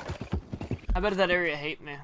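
A horse gallops with hooves thudding.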